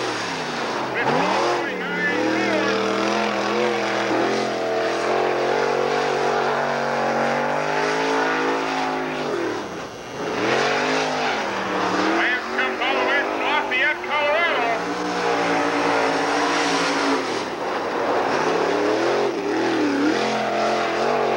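A race car engine roars loudly, revving up and down.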